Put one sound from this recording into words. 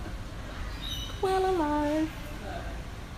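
A koala grunts close by.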